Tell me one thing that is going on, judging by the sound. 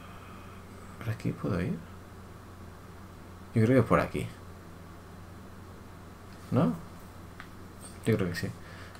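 A middle-aged man speaks in short bursts, close to a microphone.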